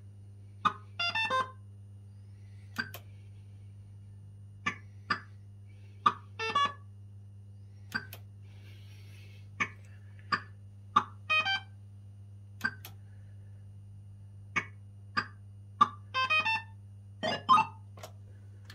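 A fruit machine plays short electronic beeps and jingles.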